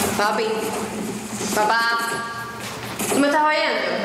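A young woman speaks in a tense voice.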